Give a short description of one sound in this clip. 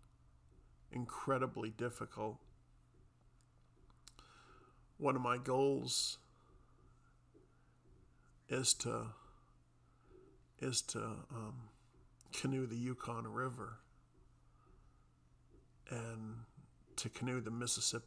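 A middle-aged man speaks calmly in short bursts close to a microphone.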